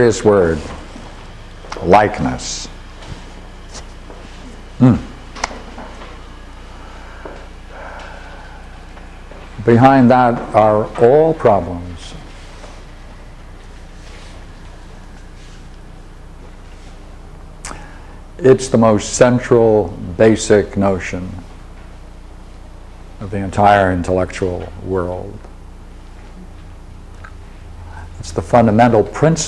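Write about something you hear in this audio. An elderly man speaks calmly, with long pauses between phrases.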